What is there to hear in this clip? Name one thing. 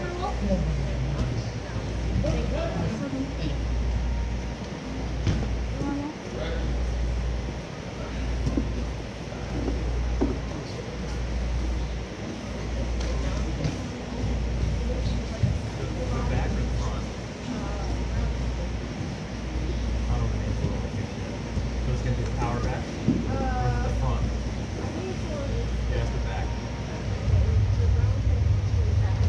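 Men and women talk at a distance in a large echoing hall.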